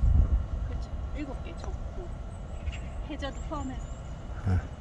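A woman talks nearby outdoors.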